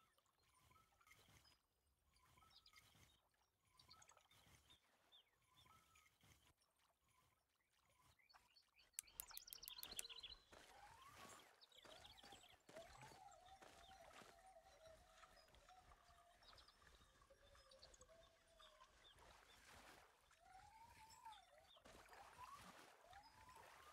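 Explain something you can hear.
A fishing reel whirs and clicks as line is wound in.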